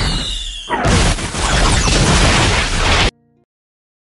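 A huge explosion booms.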